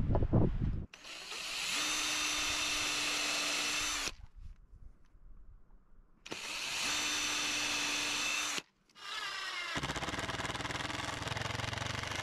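A cordless drill whirs in short bursts as it drives screws.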